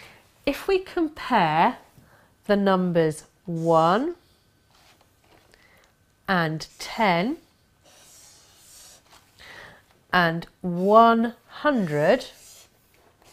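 A woman speaks calmly and clearly into a close microphone, with pauses between phrases.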